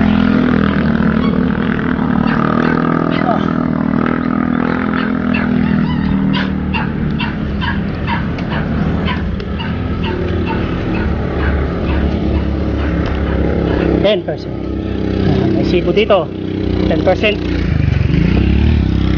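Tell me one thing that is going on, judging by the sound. A motorcycle engine hums steadily close by while riding.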